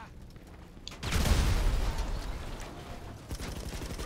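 An explosion booms loudly and rumbles.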